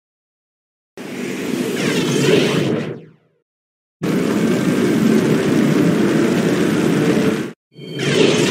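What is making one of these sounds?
A spacecraft's engine roars loudly as the craft speeds past.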